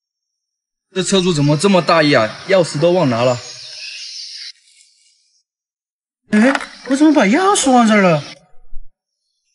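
A young man speaks in a puzzled tone, close by.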